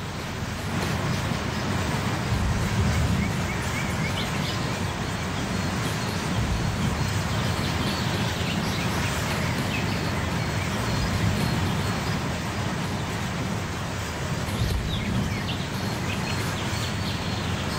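A long freight train rolls past, with its wagons rumbling and clattering over rail joints.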